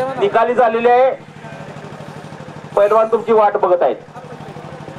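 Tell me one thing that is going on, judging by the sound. A man calls out loudly over a loudspeaker.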